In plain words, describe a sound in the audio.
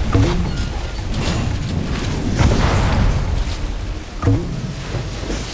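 Water splashes and rushes against a speeding boat.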